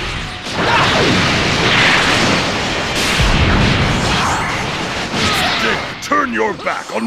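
An energy blast roars and crackles loudly.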